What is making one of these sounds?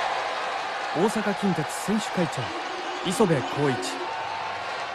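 Fans in a stadium chant and shout in loud bursts.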